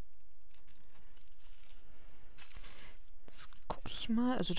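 Paper rustles and slides softly under hands.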